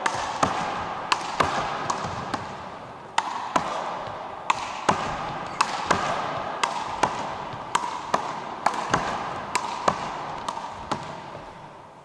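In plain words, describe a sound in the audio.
A basketball bounces rapidly on a wooden floor, echoing in a large hall.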